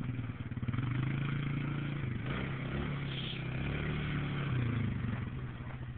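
An all-terrain vehicle engine drones steadily up close.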